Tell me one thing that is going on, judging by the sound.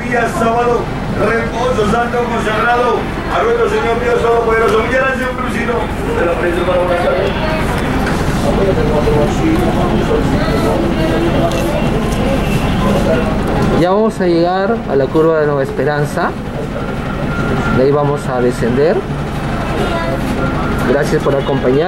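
A vehicle engine rumbles steadily while driving along a street.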